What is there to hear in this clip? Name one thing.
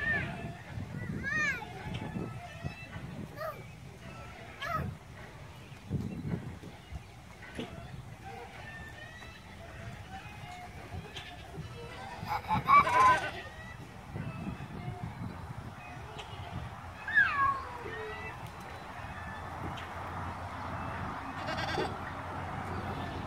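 A small child squeals and babbles nearby.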